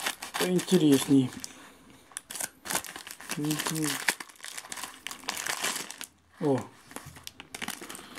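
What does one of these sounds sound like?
A paper envelope rustles and crinkles in someone's hands.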